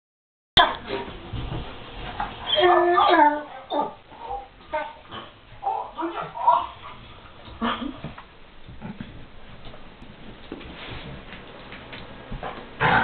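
Dogs scuffle and thump about.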